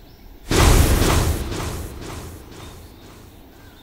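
A ball is struck hard with a loud booming whoosh that fades away.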